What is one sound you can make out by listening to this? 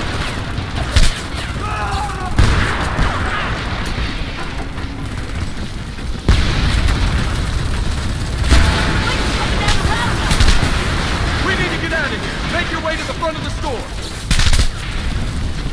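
Explosions boom and rumble now and then.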